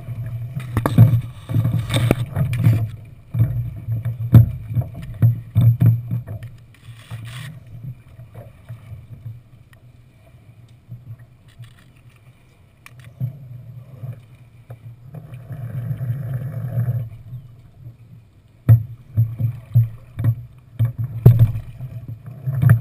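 Ropes rattle and knock against a boat's fittings.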